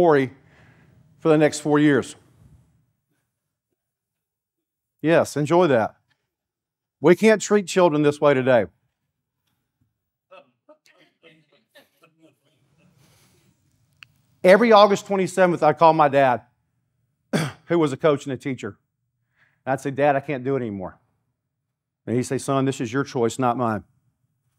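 An older man speaks with animation through a microphone, with pauses between phrases.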